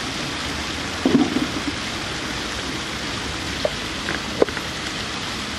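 A cardboard lid knocks and scrapes as a gift box is opened.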